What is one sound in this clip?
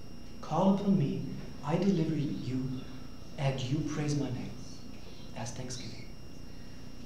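A man speaks calmly, close by, in a small echoing room.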